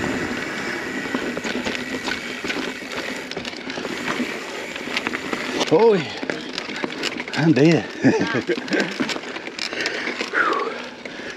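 Bicycle tyres crunch and rattle over a bumpy dirt trail.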